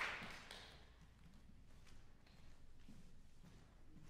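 High heels click across a wooden stage.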